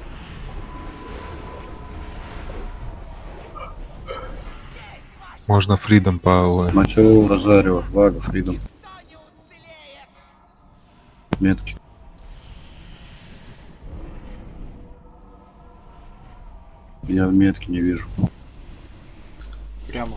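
Magical spell effects whoosh and crackle in a fight.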